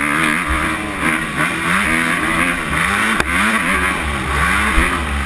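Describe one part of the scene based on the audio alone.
A dirt bike engine revs and whines up close, rising and falling in pitch.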